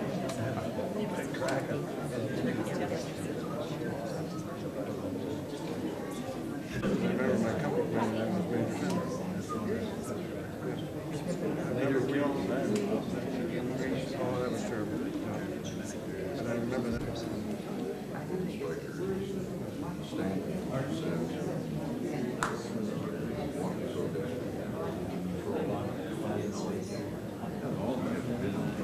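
Many adults chatter and murmur nearby in an indoor crowd.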